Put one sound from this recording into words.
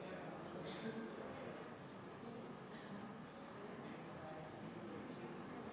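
An audience murmurs and chatters quietly in a large hall.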